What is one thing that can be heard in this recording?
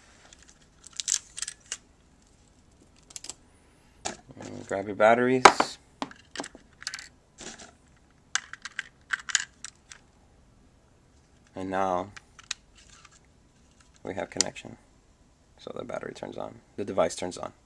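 Plastic parts click and rattle close by.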